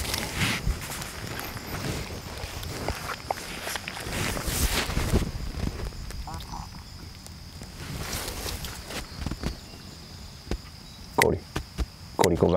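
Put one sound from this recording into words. A man speaks calmly to a dog.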